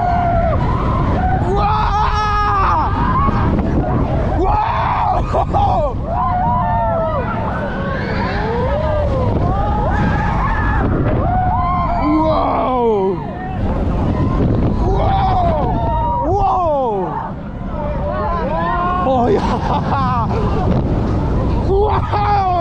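Coaster wheels rumble and roar along a steel track.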